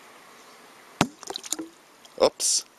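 Something splashes into water.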